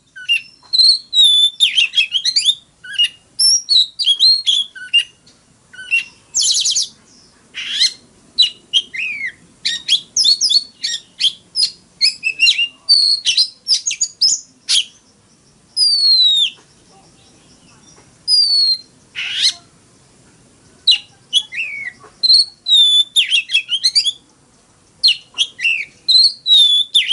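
A songbird sings loud, varied whistles and chirps close by.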